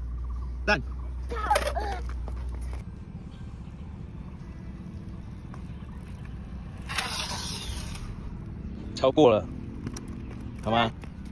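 Small bicycle tyres roll over asphalt.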